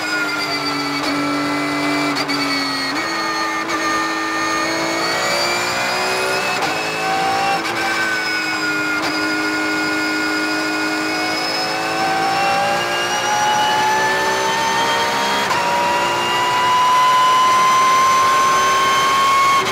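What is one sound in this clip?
A race car engine roars loudly from inside the cabin, its pitch rising and falling through gear changes.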